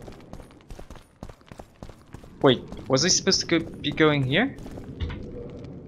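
Footsteps echo on a stone floor.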